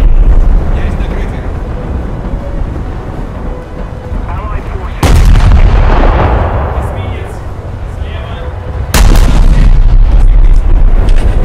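A ship's engines rumble low and steadily.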